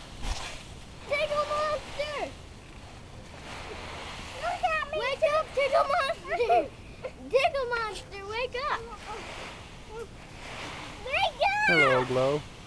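Young girls squeal and shriek with laughter close by.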